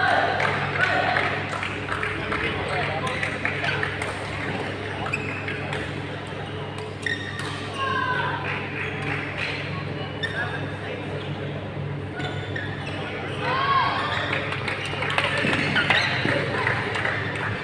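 Shoes squeak on a court floor in a large echoing hall.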